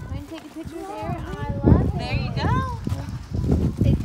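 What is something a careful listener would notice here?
A small child speaks in a high voice close by.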